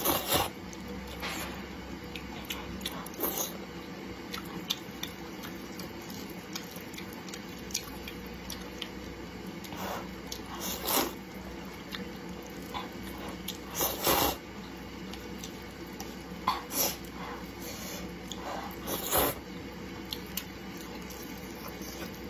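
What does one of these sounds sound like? A young woman chews food wetly, close up.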